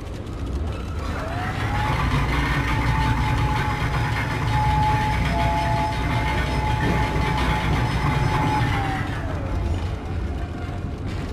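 A low mechanical rumble drones throughout.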